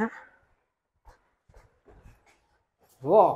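Footsteps tread on concrete stairs.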